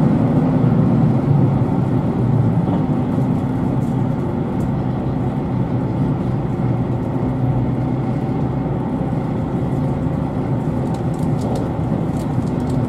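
A vehicle rumbles steadily while driving, heard from inside.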